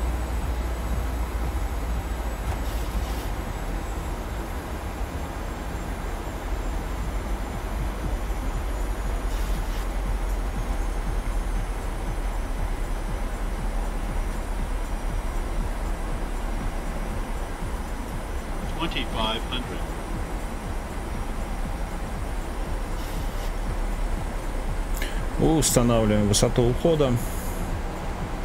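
Jet engines hum steadily in a cockpit.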